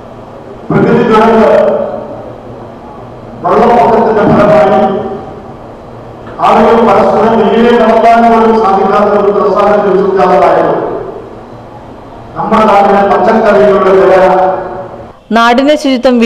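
A middle-aged man speaks forcefully through a microphone and loudspeakers, in short bursts with pauses, in an echoing hall.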